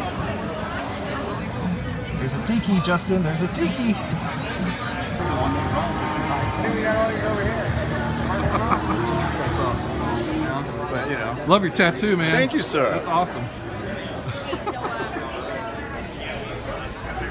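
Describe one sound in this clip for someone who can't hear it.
A crowd of people chatters throughout, in a busy indoor hall.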